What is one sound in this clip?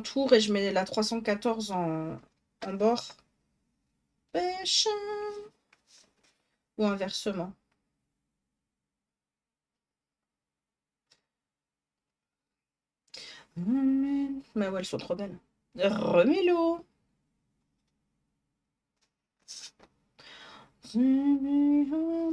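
A young woman talks with animation into a close microphone, in short bursts with pauses.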